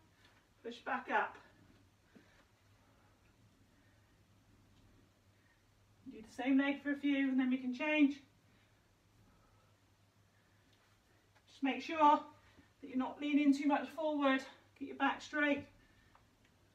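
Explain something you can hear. A woman speaks calmly and clearly, as if giving instructions, close by.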